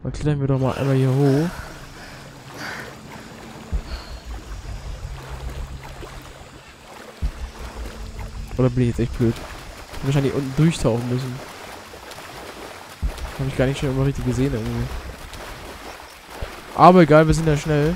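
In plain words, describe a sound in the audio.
Water splashes and sloshes as a swimmer paddles through it.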